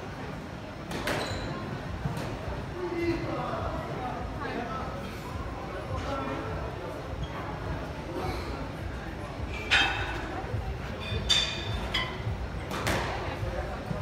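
A squash ball smacks sharply off the walls of an echoing court.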